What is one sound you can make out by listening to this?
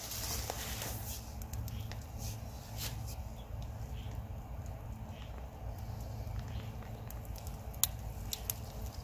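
A hoe scrapes and chops into mulch and soil.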